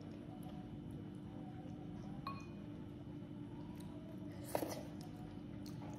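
A young girl slurps noodles.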